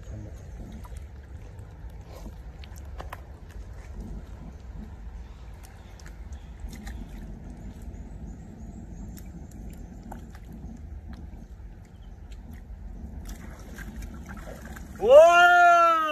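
Water splashes softly as a man gropes in shallow water.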